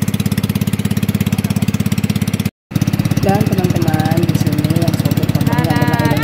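A small boat engine putters with a fast, steady throb.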